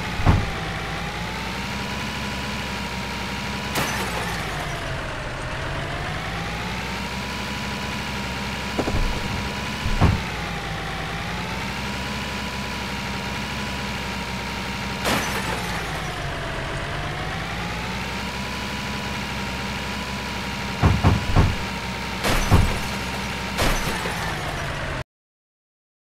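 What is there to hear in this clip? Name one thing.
A truck engine hums steadily, its pitch rising and falling as it speeds up and slows down.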